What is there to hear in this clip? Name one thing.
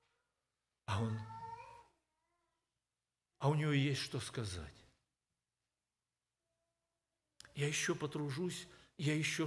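An elderly man speaks slowly and deliberately through a microphone, with long pauses.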